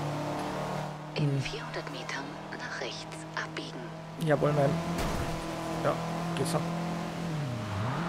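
Tyres squeal as a car drifts through a bend.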